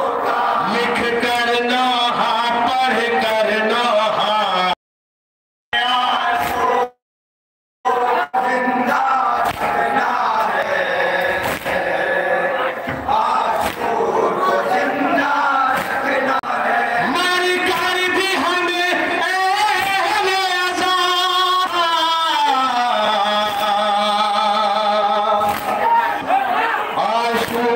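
A crowd of young men chants loudly in rhythm.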